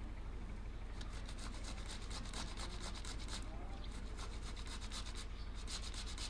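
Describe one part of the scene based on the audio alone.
A tomato is rubbed quickly against a metal grater.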